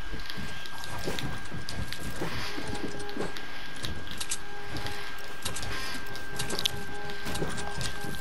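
Building pieces clack into place in a video game.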